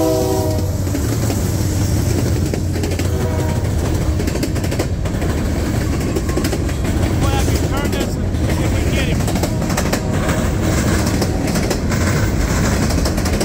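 Freight car wheels clatter and squeal on the rails.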